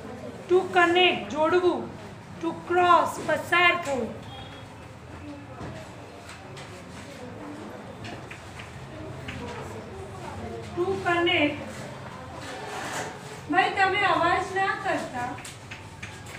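A woman speaks clearly, pausing now and then.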